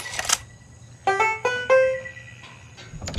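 A lock snaps open with a short ringing chime.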